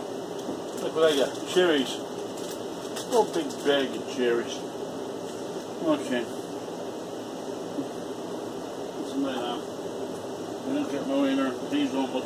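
A man speaks in short bursts close by.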